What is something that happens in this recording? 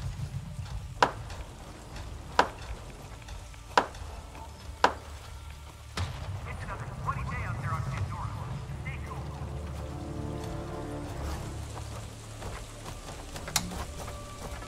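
A bow is drawn and an arrow is loosed with a sharp snap.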